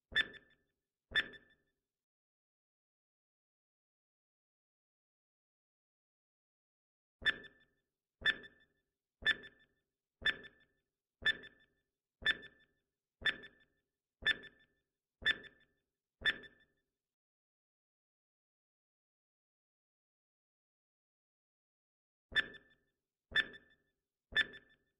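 A timer ticks steadily, about once a second.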